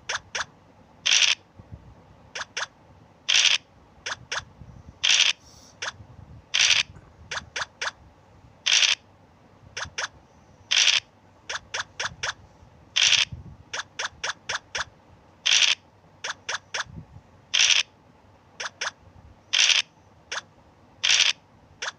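Dice rattle briefly as they roll, again and again.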